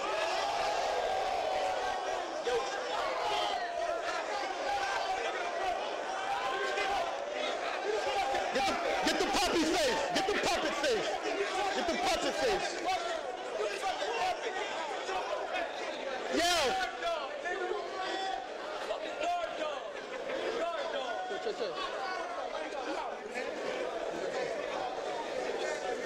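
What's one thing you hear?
A crowd of young men shouts and cheers loudly.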